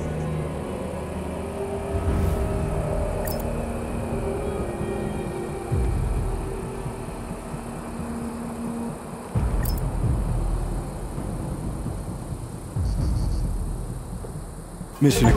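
An armoured vehicle's engine rumbles low and steadily.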